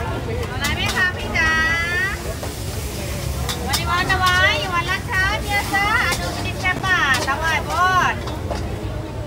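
A woman speaks close by in a lively voice.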